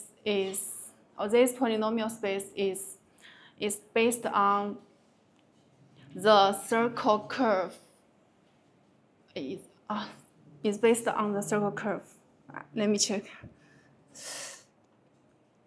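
A woman speaks calmly, explaining, close by.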